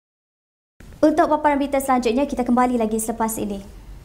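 A young woman speaks clearly and calmly into a microphone.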